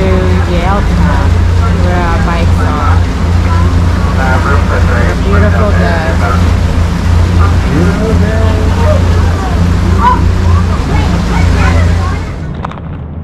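A boat motor hums steadily nearby.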